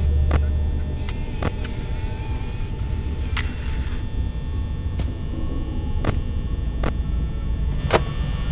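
Sharp electronic clicks sound now and then.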